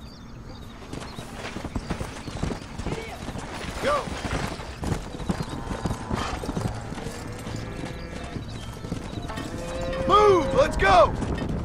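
Horse hooves pound rapidly on dry ground.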